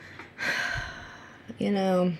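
A woman speaks briefly and softly into a microphone.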